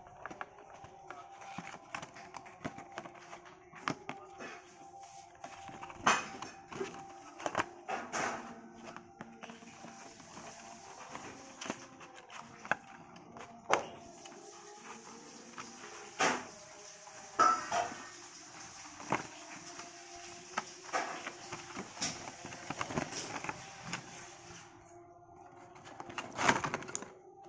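A cardboard box rustles and taps as it is handled and opened.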